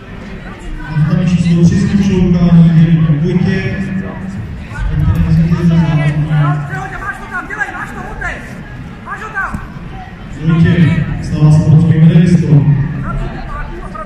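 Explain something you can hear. Spectators shout and cheer loudly in bursts.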